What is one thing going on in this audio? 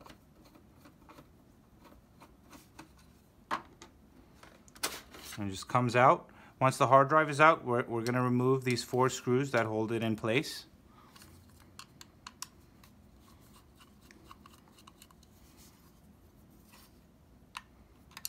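Small metal parts click and clatter.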